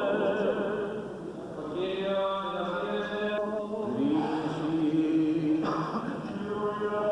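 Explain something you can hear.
Several men chant together in a slow, sustained way, in an echoing hall.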